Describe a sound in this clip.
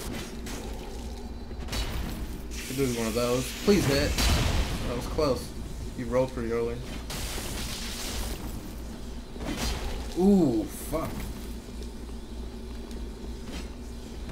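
Sword blows strike with sharp metallic hits.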